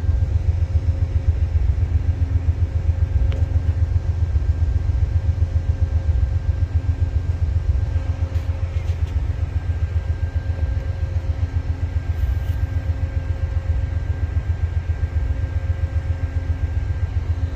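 A passenger train rumbles past close by with a steady rhythmic clatter of wheels on the rails.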